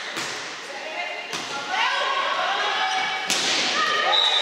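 A volleyball is struck with a sharp smack in a large echoing hall.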